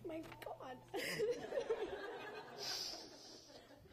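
A small group of people laugh briefly.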